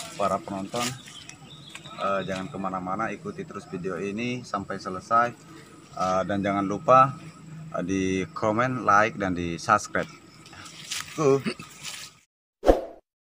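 A young man talks with animation close to the microphone.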